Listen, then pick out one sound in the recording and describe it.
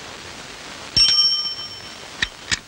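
A bicycle bell rings twice.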